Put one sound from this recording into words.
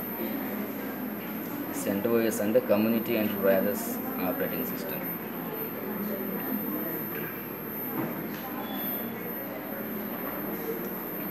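An old tube monitor gives off a steady, faint high-pitched whine.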